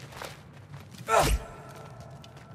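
A chain whip swings and strikes with a sharp crack.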